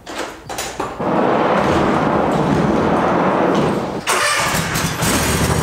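Wind rushes steadily through a large open doorway.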